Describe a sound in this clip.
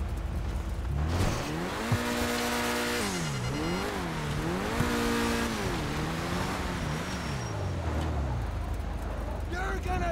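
A car engine starts and revs up and down.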